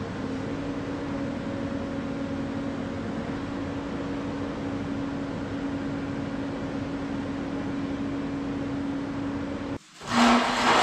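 An excavator engine idles with a steady hum, then shuts off.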